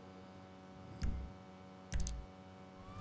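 A short menu click sounds twice.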